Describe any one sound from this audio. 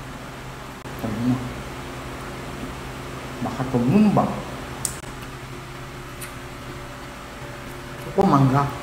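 An elderly woman speaks quietly close to a microphone.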